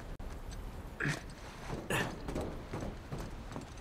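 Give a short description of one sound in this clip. Footsteps thud quickly on a metal roof.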